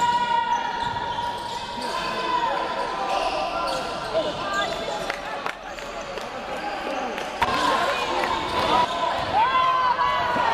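Players' footsteps patter across the court.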